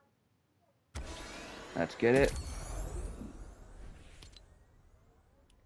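A sparkling chime rings out and slowly fades.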